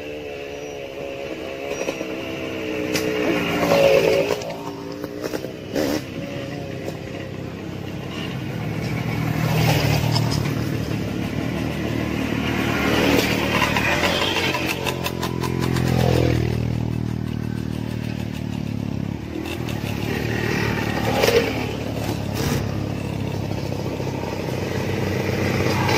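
Two-stroke dirt bikes climb a dirt track one after another, revving as they pass close by.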